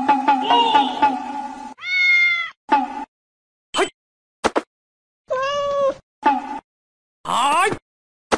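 A cat meows repeatedly.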